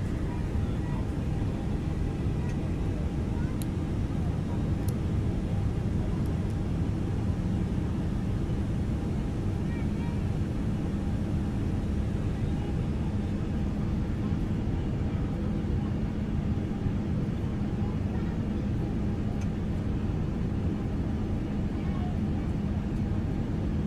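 Jet engines hum steadily at idle as an airliner taxis.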